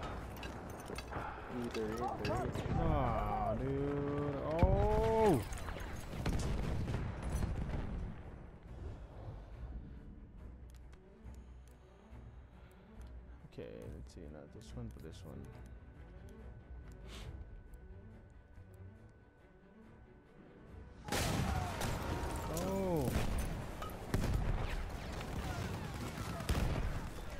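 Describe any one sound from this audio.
Explosions boom and rumble close by.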